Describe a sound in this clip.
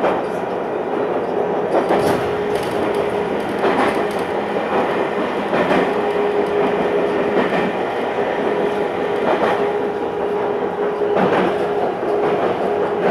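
A steady motor hum drones inside a train car.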